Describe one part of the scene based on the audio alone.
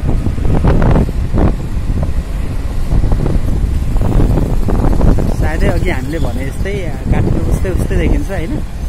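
Car engines rumble steadily in street traffic.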